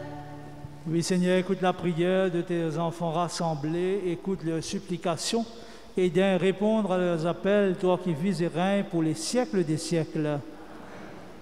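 A man sings a slow hymn through a microphone.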